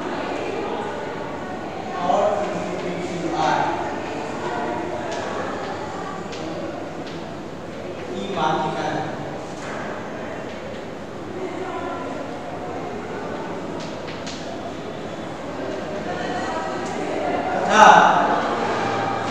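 An older man speaks calmly through a clip-on microphone.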